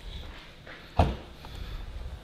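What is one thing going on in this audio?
A car's boot lid unlatches and swings open with a soft clunk.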